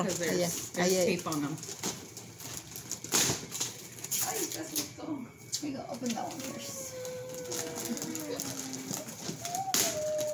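Wrapping paper and tissue rustle as a gift is handled.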